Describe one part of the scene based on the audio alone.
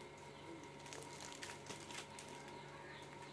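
A sheet of paper rustles close by.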